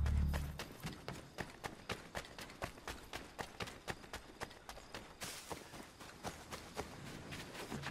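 Footsteps crunch quickly along a dirt path.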